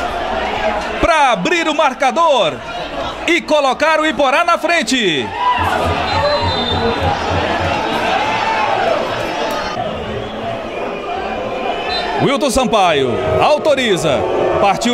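A crowd of spectators shouts and chants.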